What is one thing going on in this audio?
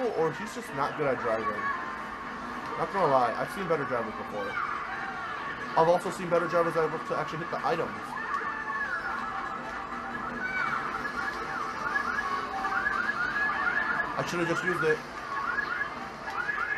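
Racing game engines whine and rev through a television speaker.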